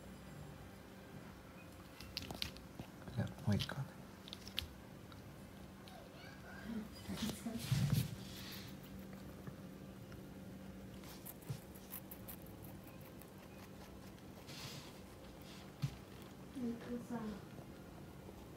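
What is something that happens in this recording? A rabbit crunches and munches on leafy greens close by.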